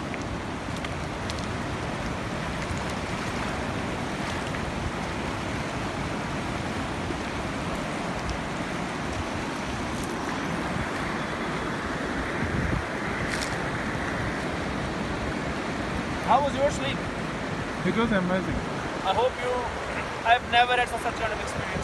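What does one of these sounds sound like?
A river rushes steadily close by.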